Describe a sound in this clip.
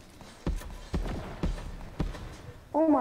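A rifle fires single shots in a video game.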